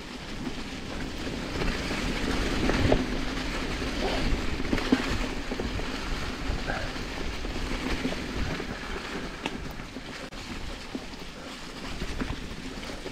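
Bicycle tyres roll and crunch over dry leaves on a dirt trail.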